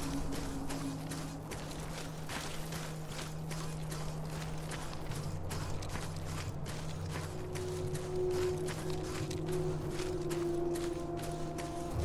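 Footsteps crunch steadily on loose gravel.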